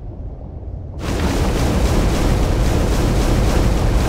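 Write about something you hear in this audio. A burst of fire roars up loudly and keeps roaring.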